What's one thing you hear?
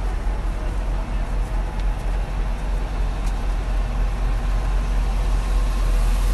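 A crowd of men and women murmur and talk nearby outdoors.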